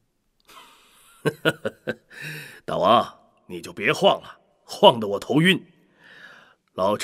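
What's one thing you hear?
A middle-aged man speaks with animation.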